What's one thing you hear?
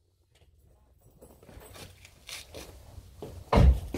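Footsteps scuff on a hard floor nearby.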